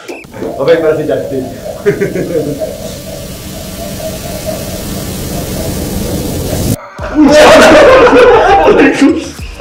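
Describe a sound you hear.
Young men laugh loudly and heartily.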